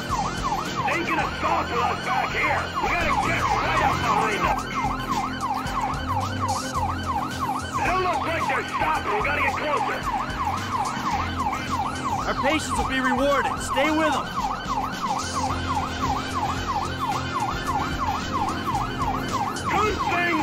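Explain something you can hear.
A siren wails rapidly up and down throughout.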